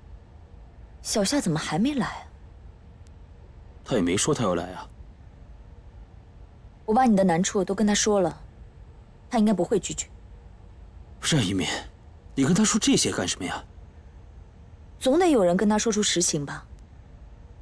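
A young man answers in a low, troubled voice, close by.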